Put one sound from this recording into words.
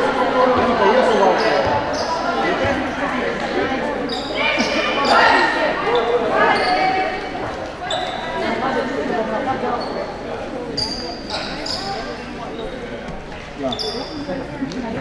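Children's voices shout and chatter in a large echoing hall.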